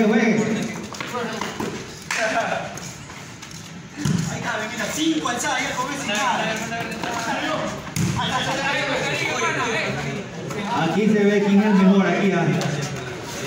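A ball is struck with a slap by hands.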